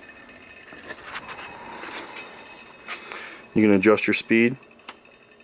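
A small stirrer motor hums softly.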